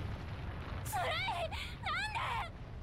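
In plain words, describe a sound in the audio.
A young woman cries out in alarm.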